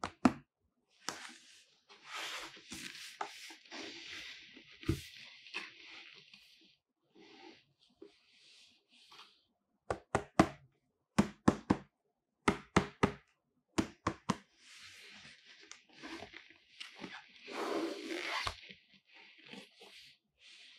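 Cardboard rustles and scrapes as a box is turned and handled.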